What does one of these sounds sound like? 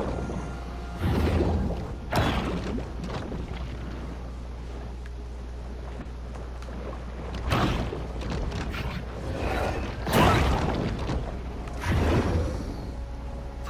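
Water churns in sudden bursts as a shark bites and thrashes.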